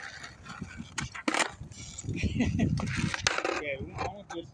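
A skateboard deck clacks against the pavement.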